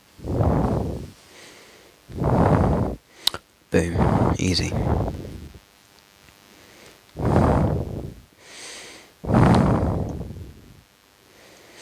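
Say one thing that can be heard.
Deep whooshing game effects swell and fade several times.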